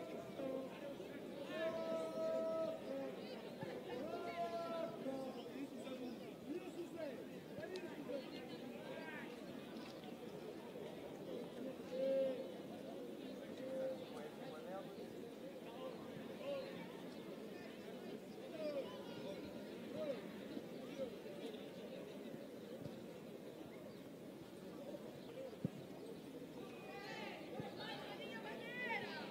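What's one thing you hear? A crowd of men talk and chatter all around outdoors.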